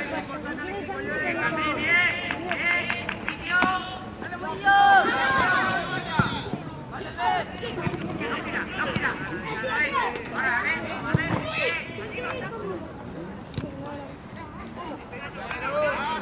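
Boys shout to each other across an open outdoor pitch.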